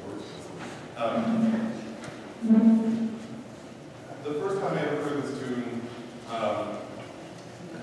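A woman talks quietly close by.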